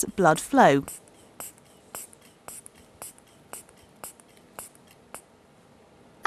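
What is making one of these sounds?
A pulse taps softly and evenly through a stethoscope.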